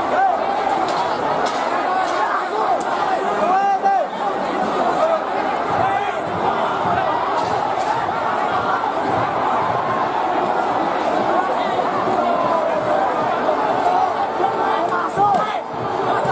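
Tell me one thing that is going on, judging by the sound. A large crowd shouts and yells loudly outdoors.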